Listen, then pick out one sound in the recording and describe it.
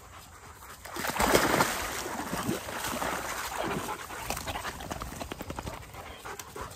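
Shallow water splashes and rushes over stones.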